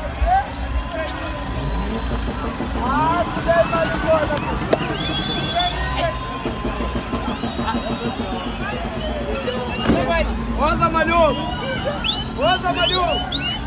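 Several men talk and call out nearby outdoors.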